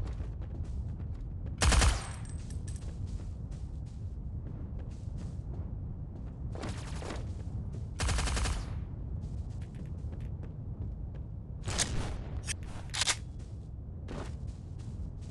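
Quick footsteps tap steadily on wooden floorboards.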